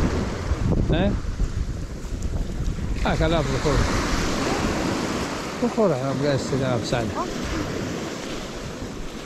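Waves crash and wash over a pebble shore.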